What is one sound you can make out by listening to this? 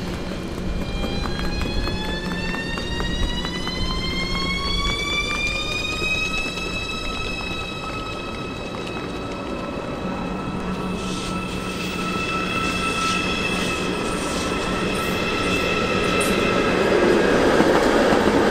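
An electric locomotive's motor whines, rising in pitch and then holding steady.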